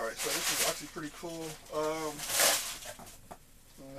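Paper packing rustles and crinkles.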